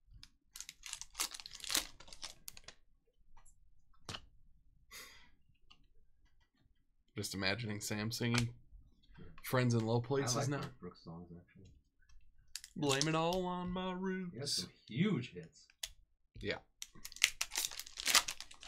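A foil wrapper crinkles and tears as hands open a pack.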